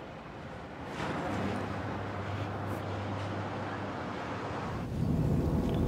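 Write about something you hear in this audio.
A car swishes past close by.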